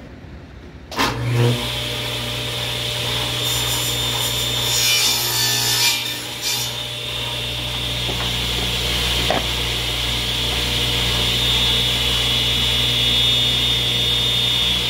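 A table saw motor runs with a steady loud whine.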